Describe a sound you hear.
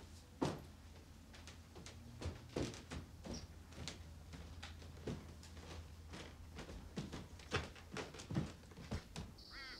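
Footsteps thud on creaky wooden stairs.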